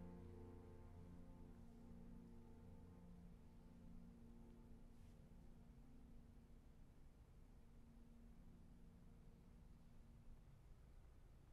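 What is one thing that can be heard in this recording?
A cello plays a soft held note that fades out.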